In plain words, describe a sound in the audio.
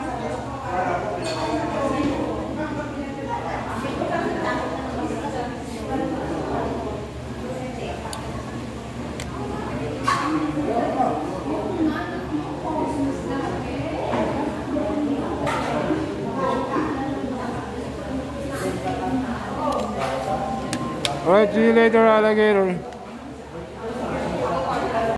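Several men and women chat at once.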